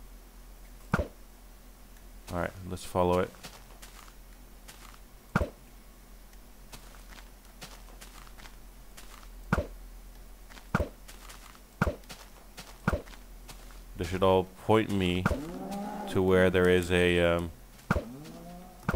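A small object is thrown with a short whoosh, again and again.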